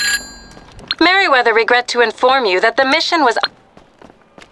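A man speaks calmly through a phone.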